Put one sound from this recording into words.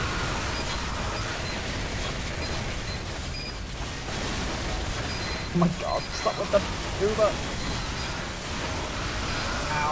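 A flamethrower roars steadily.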